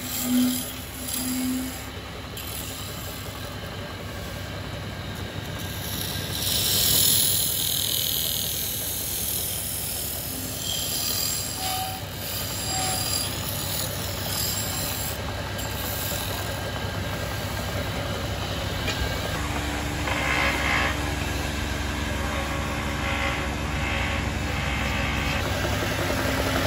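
A wood lathe whirs steadily.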